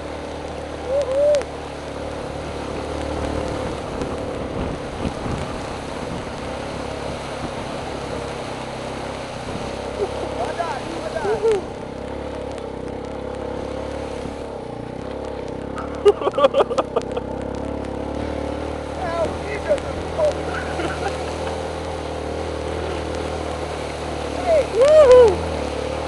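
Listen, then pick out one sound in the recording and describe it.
Water splashes and hisses under a skimming board.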